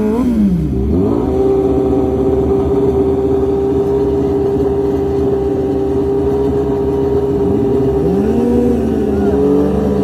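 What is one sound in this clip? A sport motorcycle engine idles with a steady rumble nearby.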